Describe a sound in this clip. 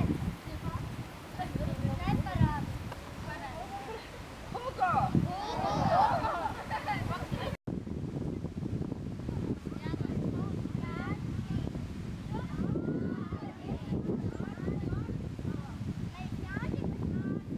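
Many children chatter and call out nearby outdoors.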